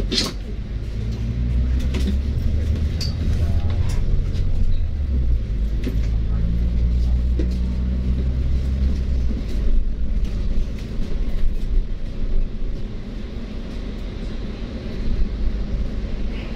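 A bus engine rumbles low and steady, easing off partway through.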